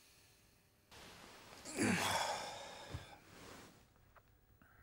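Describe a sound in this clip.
A young man groans sleepily as he stretches awake.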